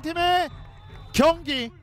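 A referee blows a short whistle.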